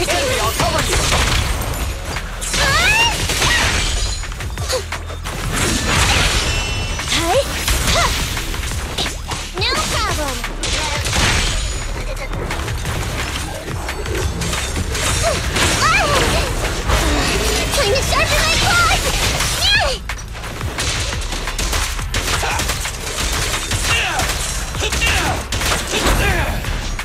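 Game sword slashes and blows hit rapidly.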